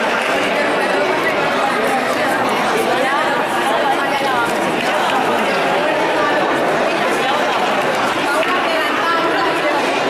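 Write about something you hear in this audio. A man speaks loudly to a group of children.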